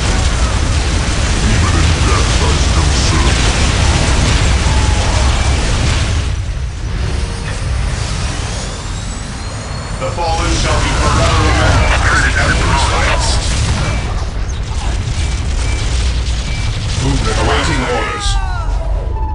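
Guns fire in rapid bursts amid explosions in a battle.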